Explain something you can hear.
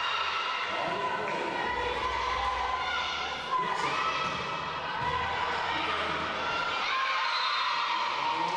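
Young players call out to each other across an echoing hall.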